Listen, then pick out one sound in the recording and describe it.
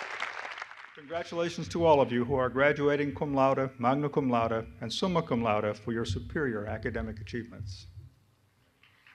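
A man speaks formally through a microphone and loudspeakers.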